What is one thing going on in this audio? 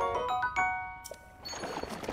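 A bright chime rings out.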